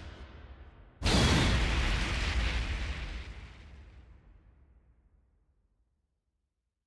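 A loud explosion booms and slowly fades away.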